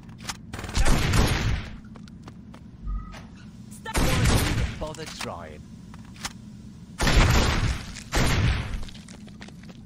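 Gunshots bang loudly, one after another.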